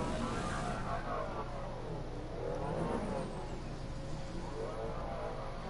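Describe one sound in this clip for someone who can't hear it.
A hoverboard hums steadily as it glides.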